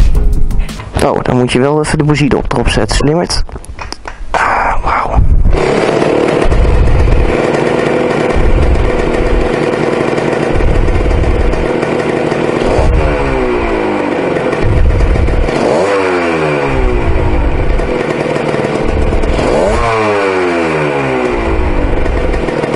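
A motorcycle engine revs up sharply and drops back several times.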